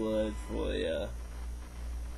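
A young man speaks with animation close to a webcam microphone.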